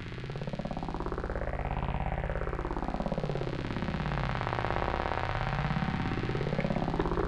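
A synthesizer plays a fast pulsing pattern whose tone sweeps brighter and darker.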